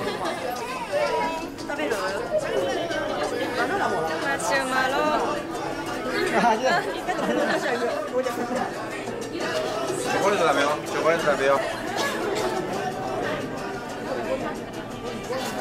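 Several adults talk and laugh nearby with animation.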